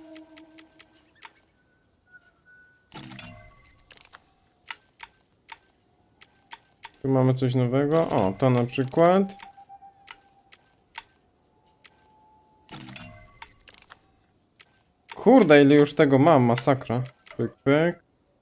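Short soft clicks tick as menu items are switched.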